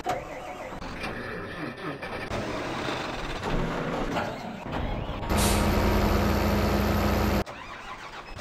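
A tractor engine rumbles and roars.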